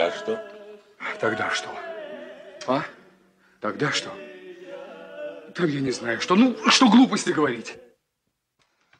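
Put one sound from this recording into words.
A second man answers in a raised voice.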